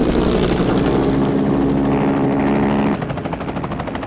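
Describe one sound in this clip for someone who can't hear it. A helicopter's rotor thumps steadily nearby.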